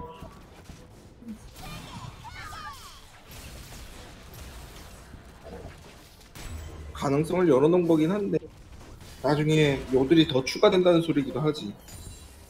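Video game combat effects clash and crackle.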